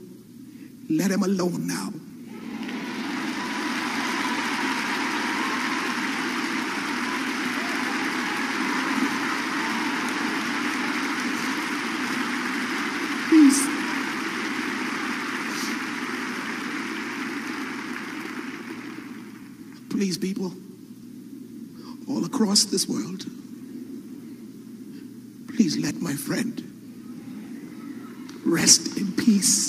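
A man preaches loudly through a microphone in a large echoing hall.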